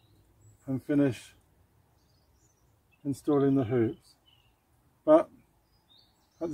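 A middle-aged man speaks calmly close by, in short phrases.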